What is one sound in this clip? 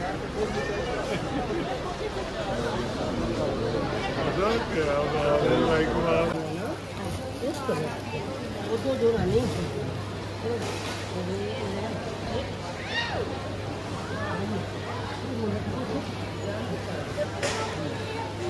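Men and women talk with animation close by.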